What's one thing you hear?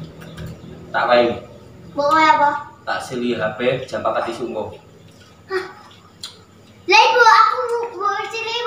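A young child talks in a high voice nearby.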